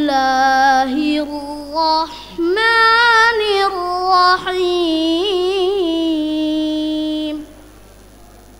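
A boy chants melodically into a microphone, holding long wavering notes.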